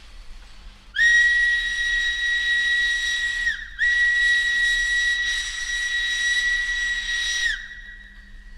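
A steam locomotive whistle blows in two long blasts.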